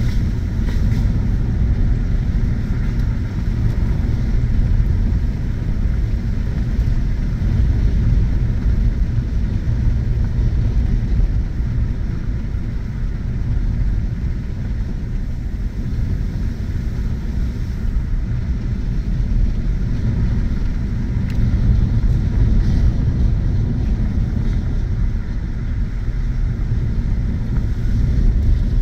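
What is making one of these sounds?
A vehicle's engine hums steadily from inside the cab.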